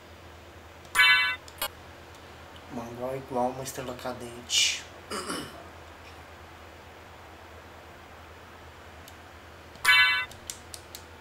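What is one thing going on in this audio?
A bright electronic chime rings twice.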